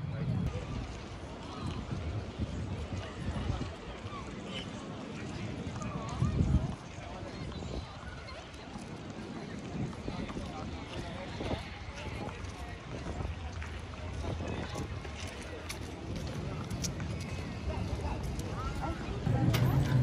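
Footsteps tap on paved ground.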